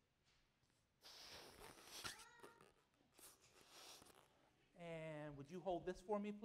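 A balloon squeaks as it is twisted.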